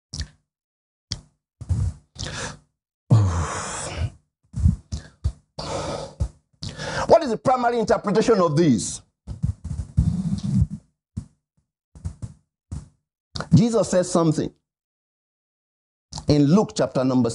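A man preaches with animation into a microphone, in short bursts with pauses.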